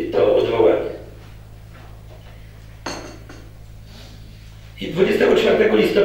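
A middle-aged man reads out aloud into a microphone.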